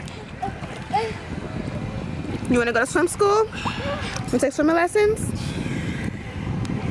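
Water splashes and laps around swimmers.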